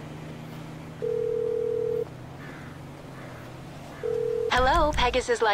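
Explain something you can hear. A phone dials with a steady ringing tone.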